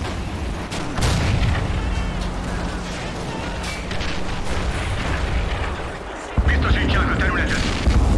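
A heavy explosion bursts with a deep roar.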